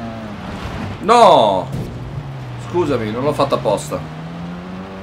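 A young man speaks with animation into a close headset microphone.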